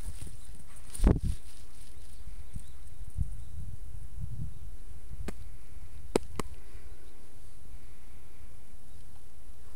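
A dog runs across dry grass.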